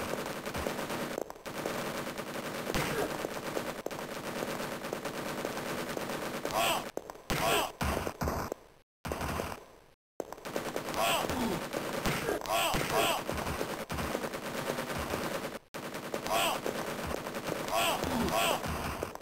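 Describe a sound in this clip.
A plasma gun fires in sharp, repeated zaps.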